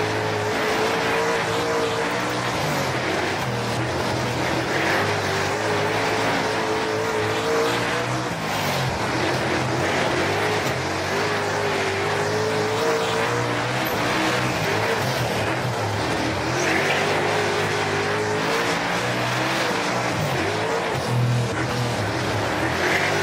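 A race car engine roars loudly, revving up and down as it speeds around a dirt track.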